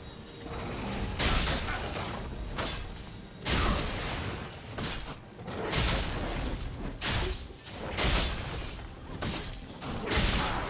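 Game spell effects whoosh and crackle in repeated bursts.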